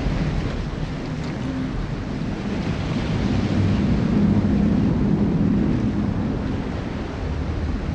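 Waves splash against a ship's hull.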